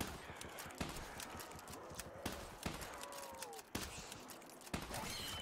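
Gunshots fire in sharp bursts.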